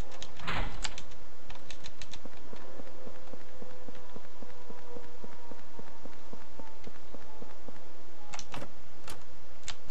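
Quick, light footsteps tap steadily on a hard floor.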